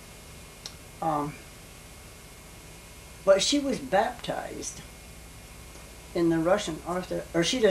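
An elderly woman speaks calmly and haltingly, close by.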